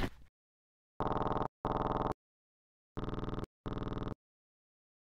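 A squishy sound plays as sauce is spread.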